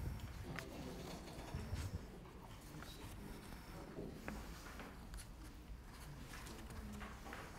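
A woman reads aloud calmly, heard from a short distance.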